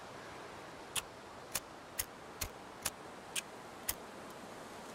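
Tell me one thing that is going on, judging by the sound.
A fire striker scrapes and clicks in sharp, quick strikes.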